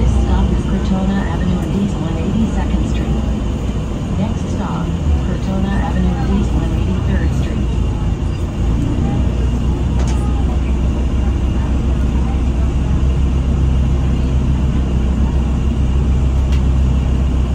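A bus engine rumbles low and steady while riding.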